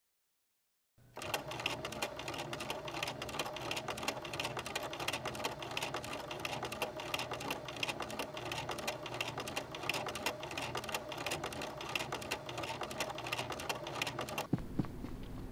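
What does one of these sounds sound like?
A sewing machine runs fast, its needle clattering rapidly.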